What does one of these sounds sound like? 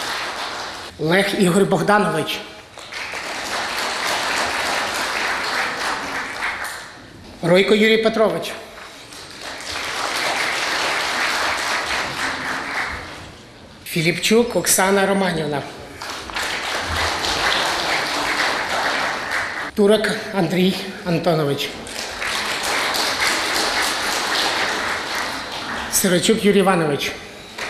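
A man announces names over a loudspeaker in a large hall.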